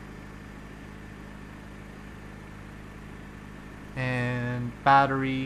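An aircraft engine drones steadily at a low pitch.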